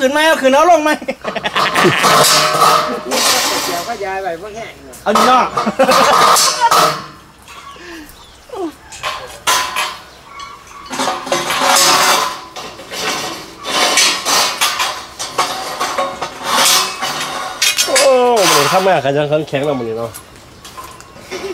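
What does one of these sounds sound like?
Metal frames clank and rattle as they are handled.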